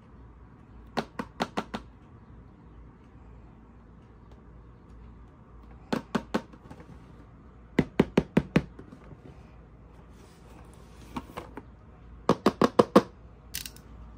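Fingernails tap in quick bursts on a cardboard box.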